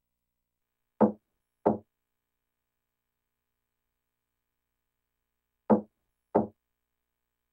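Two knocks sound on a wooden door, then two more a few seconds later.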